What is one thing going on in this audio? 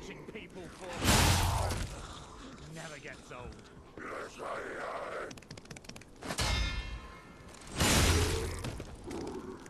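A heavy blade swings and strikes with loud clangs.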